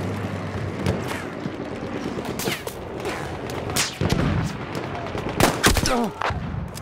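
A pistol fires single loud shots.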